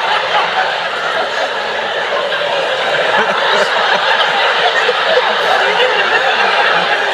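A man laughs into a microphone.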